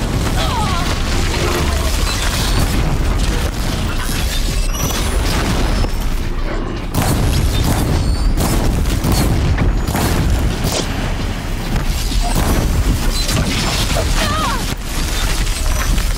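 Explosions boom and crackle in a game battle.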